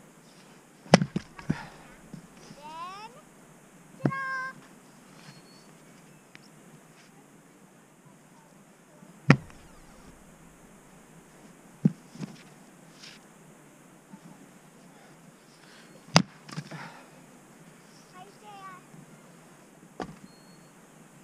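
Split wood pieces clatter onto snow.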